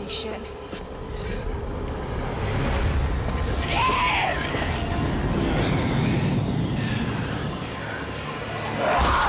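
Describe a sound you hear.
Zombies groan and moan in a crowd.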